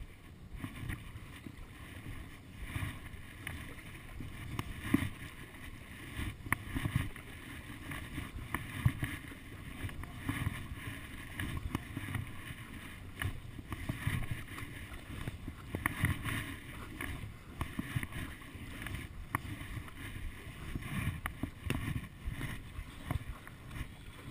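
A paddle dips and splashes in calm water at a steady pace.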